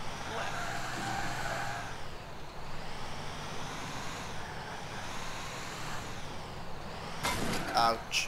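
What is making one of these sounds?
A fire truck siren wails up and down.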